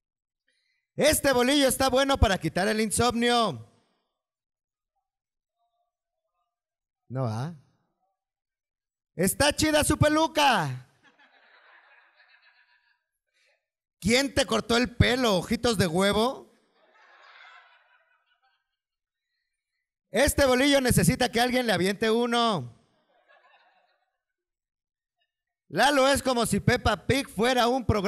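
A man reads aloud into a microphone in bursts, with pauses between.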